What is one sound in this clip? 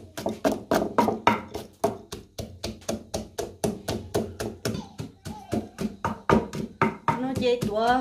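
A pestle pounds rapidly in a stone mortar.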